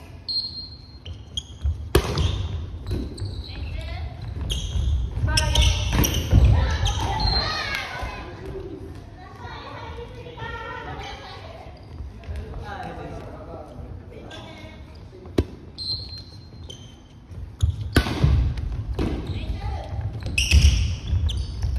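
Sneakers squeak sharply on a wooden floor in a large echoing hall.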